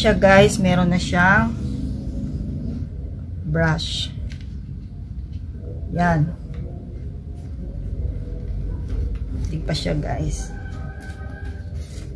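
A plastic makeup palette clicks open and shut.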